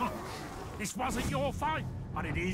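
A gruff male voice growls a taunt.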